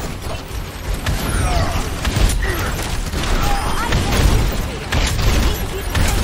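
Explosions boom with deep rumbling.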